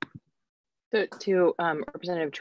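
A woman speaks over an online call.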